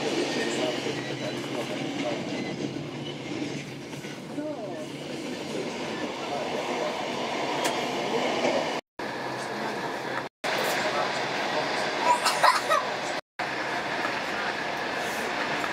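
A passenger train rolls along the track, heard from inside a carriage.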